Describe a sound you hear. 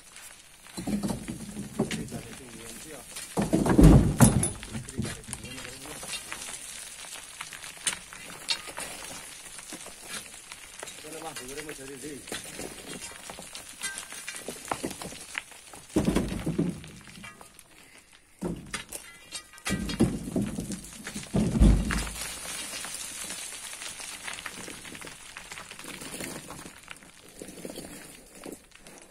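Loose earth and pebbles trickle down a steep slope.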